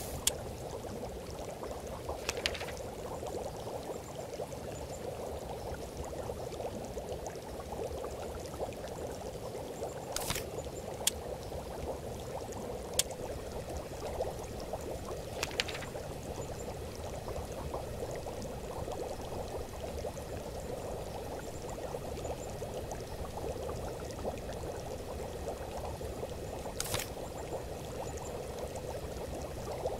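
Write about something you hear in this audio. A pot of liquid bubbles steadily.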